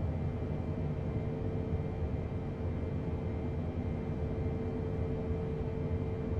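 Jet engines roar with a steady low rumble.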